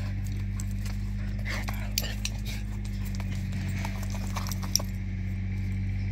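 Dogs scuffle and tussle playfully.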